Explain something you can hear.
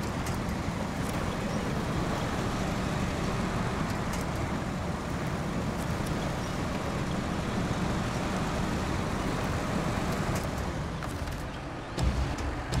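A heavy truck engine rumbles and strains as the truck churns through water.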